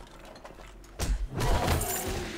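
A bat strikes a zombie with a heavy thud.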